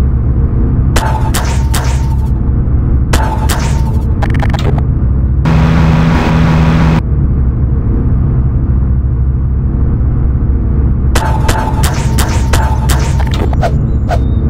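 A video game tool gun fires with sharp electronic zaps.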